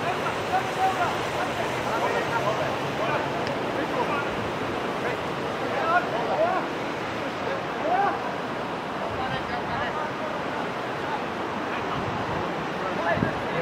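Wind blows steadily past the microphone.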